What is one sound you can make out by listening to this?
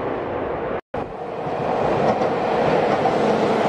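An electric train rolls in along the tracks with a loud rumble.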